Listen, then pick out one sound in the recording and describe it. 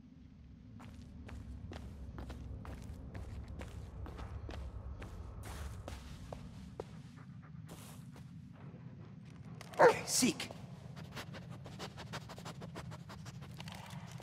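Footsteps crunch over gravel and debris.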